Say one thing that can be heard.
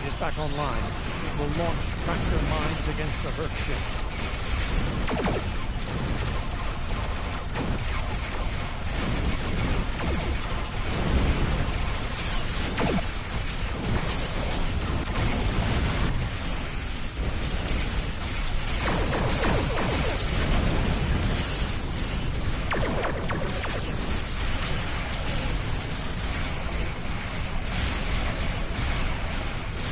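Laser weapons fire rapidly.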